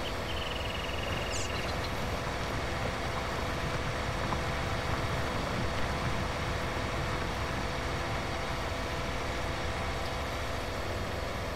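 A disc harrow rattles over soil.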